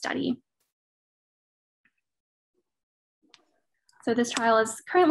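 A woman speaks calmly over an online call, pausing between phrases.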